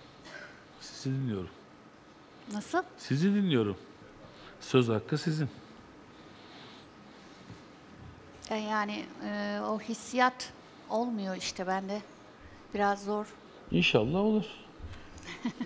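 A middle-aged woman talks animatedly over a microphone.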